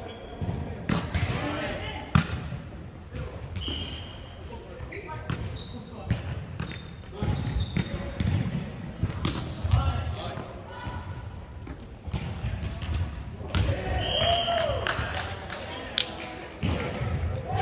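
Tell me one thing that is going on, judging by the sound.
A volleyball thumps off players' arms and hands.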